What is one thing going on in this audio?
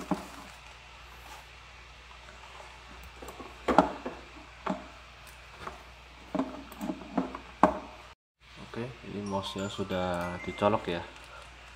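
A plastic computer mouse clicks and taps as it is handled.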